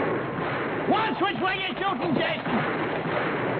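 An elderly man shouts.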